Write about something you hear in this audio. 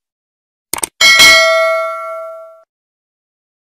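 A small bell rings and fades away.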